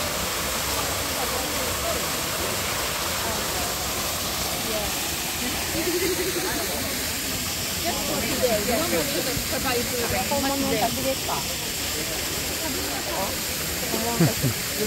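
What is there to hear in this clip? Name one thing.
A small waterfall splashes steadily.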